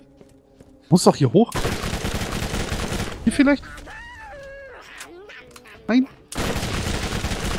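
A rifle fires with a loud crack.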